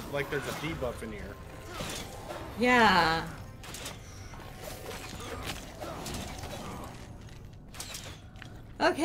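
A sword slashes and clangs in a fight.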